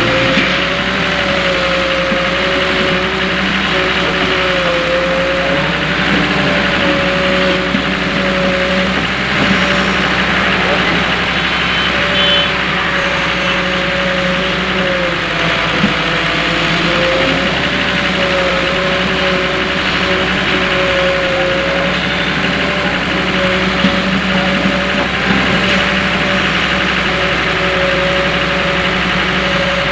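An excavator engine drones steadily close by, its pitch wavering slightly.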